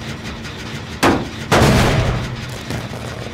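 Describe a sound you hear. A heavy metal blow crashes loudly against an engine.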